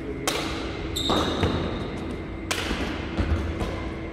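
Sneakers squeak and shuffle on a hard court floor.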